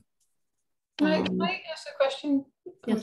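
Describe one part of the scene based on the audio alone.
A second woman speaks calmly over an online call.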